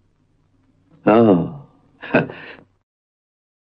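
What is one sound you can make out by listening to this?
An older man answers gruffly, close by.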